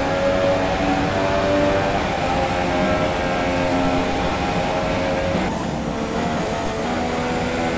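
A racing car engine screams at high revs, its pitch rising and dropping with gear changes.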